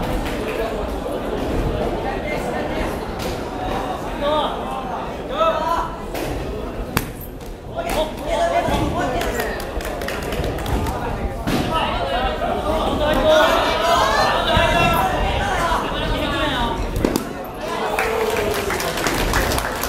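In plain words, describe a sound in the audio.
A crowd of young people chatters and cheers in a large echoing hall.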